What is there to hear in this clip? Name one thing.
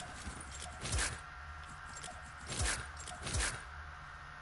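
Short game menu clicks sound as items are swapped.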